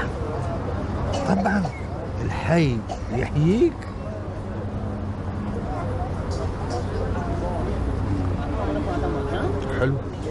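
An elderly man talks quietly and closely.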